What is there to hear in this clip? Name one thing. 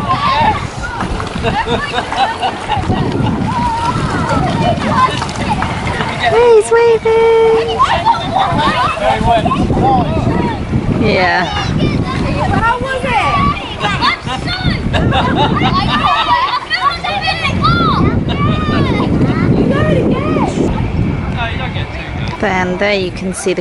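Children and adults chatter and call out nearby.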